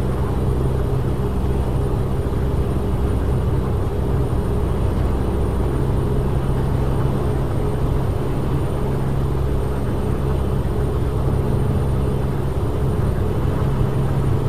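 A truck engine hums steadily at a low pitch while driving.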